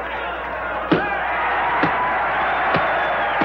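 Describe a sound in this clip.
Elderly women shout with excitement.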